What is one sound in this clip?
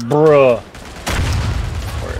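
A rifle bolt clicks and clacks as a cartridge is loaded.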